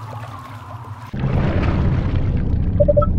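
A penguin splashes into water.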